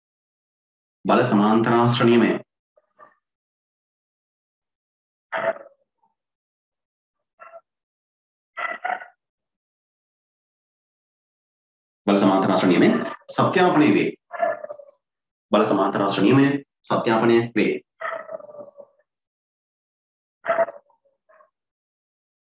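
A man speaks calmly close to a microphone, in short bursts with pauses.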